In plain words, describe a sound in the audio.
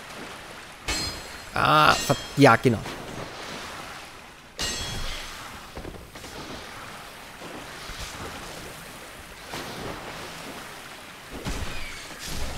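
Weapon blows thud and clang.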